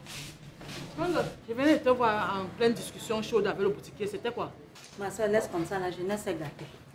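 A middle-aged woman speaks sharply and with displeasure close by.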